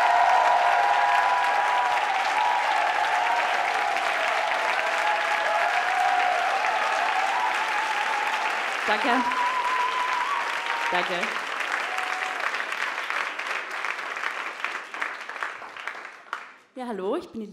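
A large audience laughs and cheers loudly.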